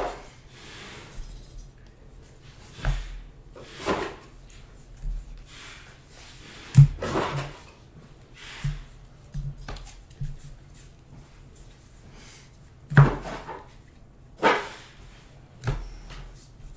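Trading cards shuffle and slap together in someone's hands.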